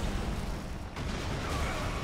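A heavy blow crashes onto stone and scatters debris.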